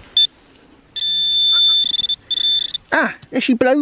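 A handheld probe sounds a steady high electronic tone.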